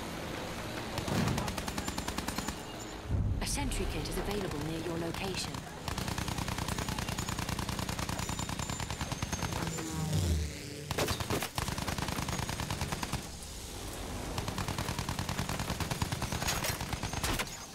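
Machine guns fire in rapid bursts.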